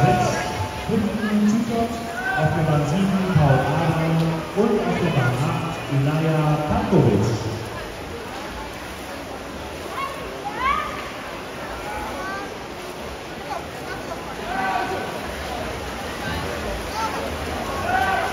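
Spectators shout and cheer loudly in an echoing indoor pool hall.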